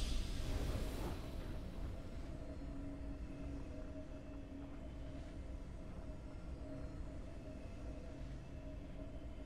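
A soft, steady victory tune plays.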